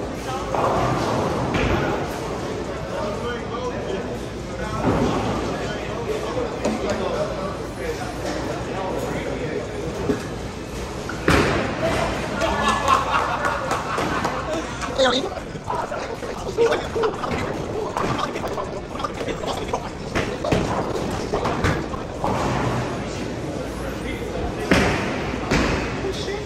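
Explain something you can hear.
A busy echoing hall murmurs in the background.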